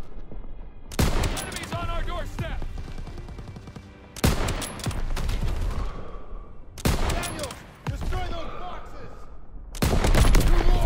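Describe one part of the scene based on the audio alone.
A rifle fires loud, sharp shots that echo, a few seconds apart.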